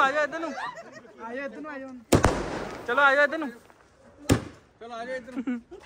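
Fireworks crackle as sparks burst in the sky.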